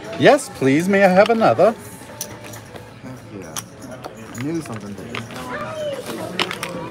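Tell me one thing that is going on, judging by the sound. Casino chips click together.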